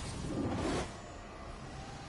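A hoverboard hums as it glides over the ground.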